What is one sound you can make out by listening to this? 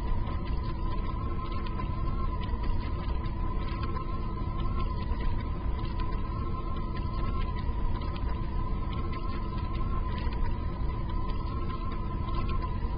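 Lava bubbles and rumbles low and steadily.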